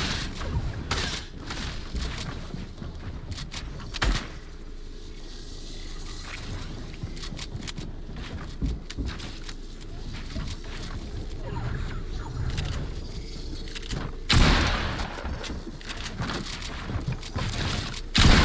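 Wooden walls and ramps snap into place with quick clacks.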